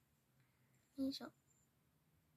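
A young girl says a few quiet words close by.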